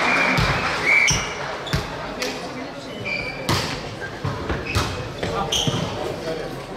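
Sneakers squeak on the hall floor.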